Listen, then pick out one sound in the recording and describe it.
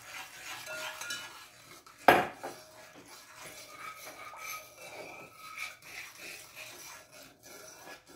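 A spoon stirs and scrapes inside a metal pot.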